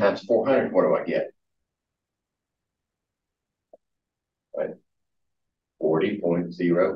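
A man lectures.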